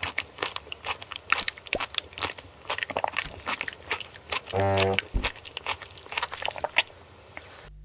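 A man gulps water noisily.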